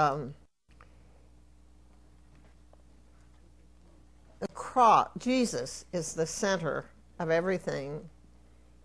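An elderly woman speaks with emphasis through a microphone, pausing between phrases.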